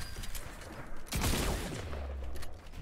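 A game explosion booms.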